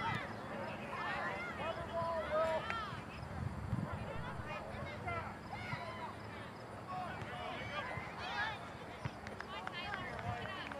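Spectators at a soccer game talk and call out in the distance outdoors.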